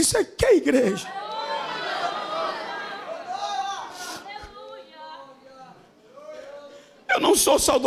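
An audience of men laughs.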